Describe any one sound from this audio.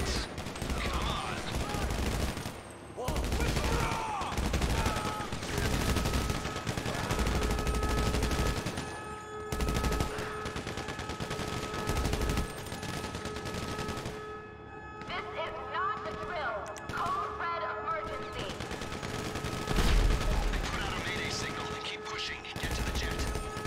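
Rifles fire in rapid bursts, echoing in a large hall.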